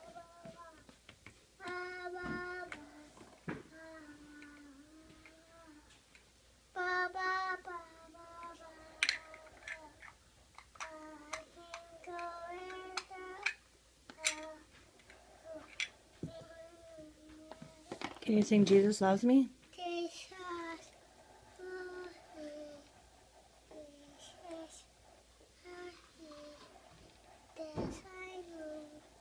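A young girl talks and sings in a high voice close by.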